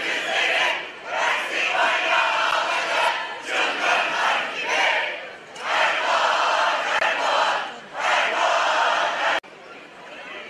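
A large crowd chants and cheers in loud bursts.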